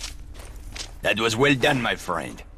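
A man speaks calmly and warmly, close by.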